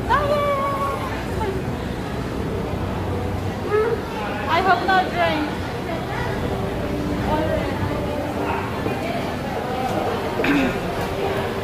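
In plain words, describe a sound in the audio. A young woman talks animatedly and laughs close by.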